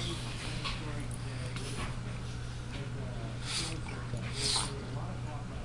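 A small dog sniffs at a carpet.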